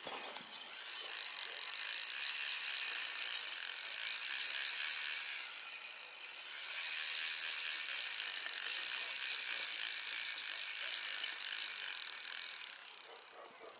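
A fishing reel whirs quickly as line is wound in, pausing briefly midway.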